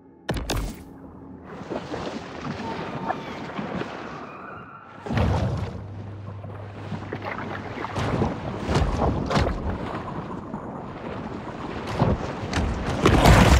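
Muffled water rushes and swirls underwater.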